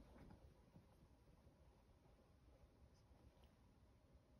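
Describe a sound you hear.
A small dog's paws scrabble softly on fabric.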